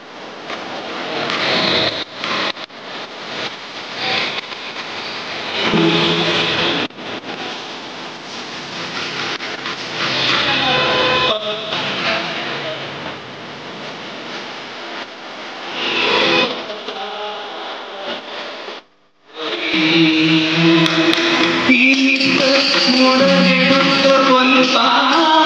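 Classical music plays loudly over loudspeakers in a large hall.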